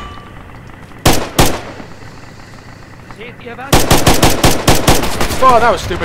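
A rifle fires loud shots up close, some in a rapid burst.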